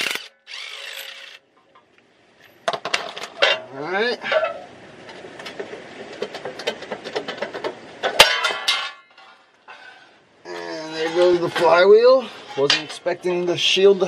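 Metal parts clink and scrape.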